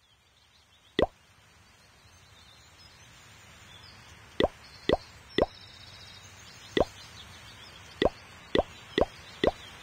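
Short bright interface pops sound as game menus open and buttons are tapped.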